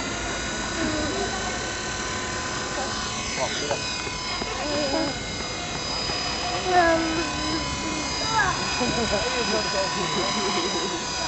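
A model helicopter's motor whines steadily with a high pitch.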